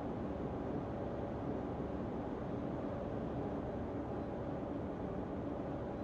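A train engine hums steadily while idling.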